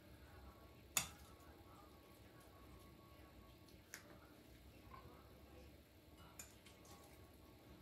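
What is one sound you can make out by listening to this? A spoon scrapes and clinks against a bowl.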